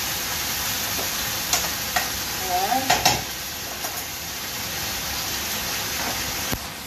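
Food sizzles steadily in a pan.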